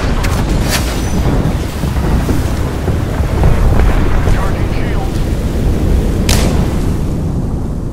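Fire roars and sparks crackle in a video game.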